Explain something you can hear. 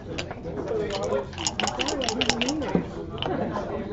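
Dice rattle in a cup.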